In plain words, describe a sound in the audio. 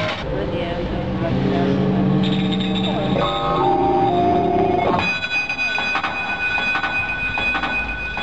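A group of people sing together outdoors.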